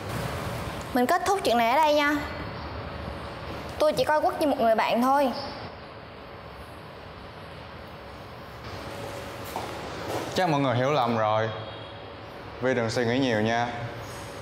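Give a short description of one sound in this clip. A young woman speaks up close.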